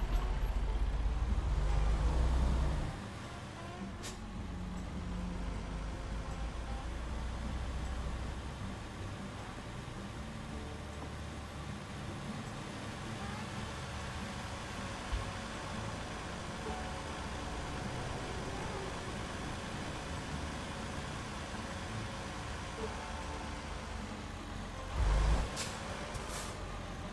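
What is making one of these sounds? A truck engine rumbles steadily and rises and falls with the throttle.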